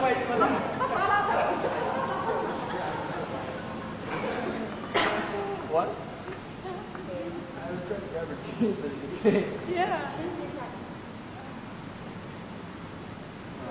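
A young man talks casually and nearby.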